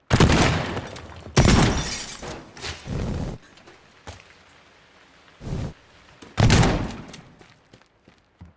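A shotgun fires loudly several times.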